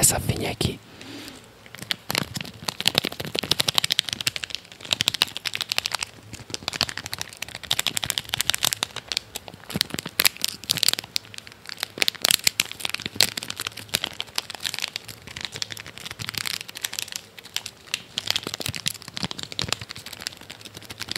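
A plastic wrapper crinkles and rustles close to a microphone.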